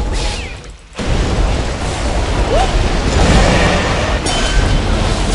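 Magical blasts and explosions crackle loudly during a fight.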